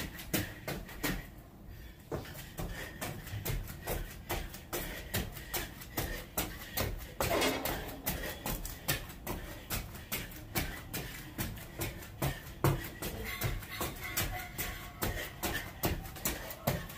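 Sneakers tap quickly and lightly on a concrete floor.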